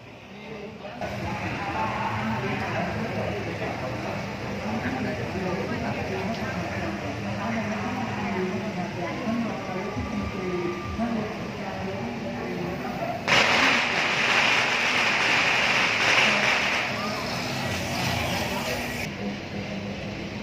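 Vehicle engines hum as a procession of cars rolls slowly past.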